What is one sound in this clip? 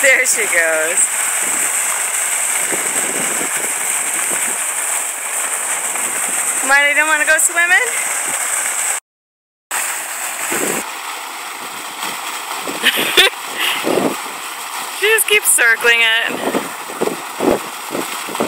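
A dog splashes as it wades through water.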